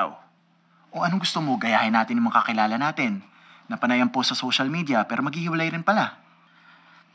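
A second young man answers in a relaxed, playful voice nearby.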